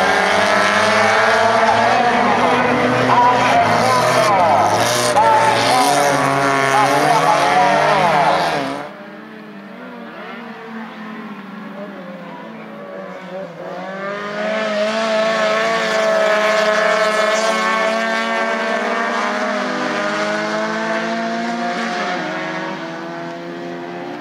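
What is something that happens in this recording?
Small race car engines roar and whine as they speed by on a dirt track.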